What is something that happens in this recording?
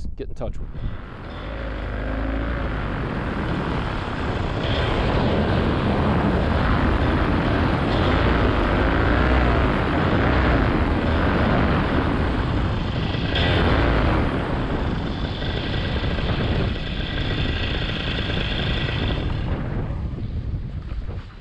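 Wind rushes loudly past in flight, then eases off.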